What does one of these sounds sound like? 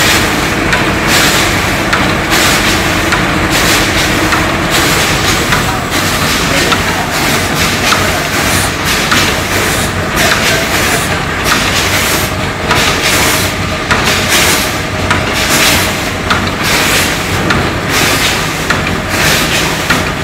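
A packaging machine clatters and whirs steadily.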